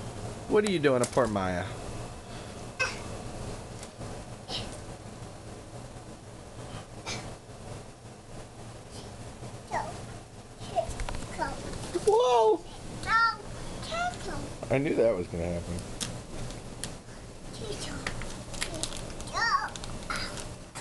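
A toddler babbles and squeals close by.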